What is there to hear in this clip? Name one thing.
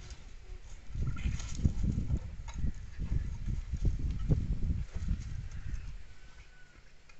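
Cats scuffle and tumble over dry leaves and dirt.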